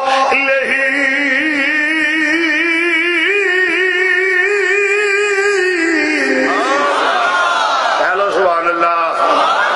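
An elderly man chants in a drawn-out, singing voice through a microphone and loudspeaker.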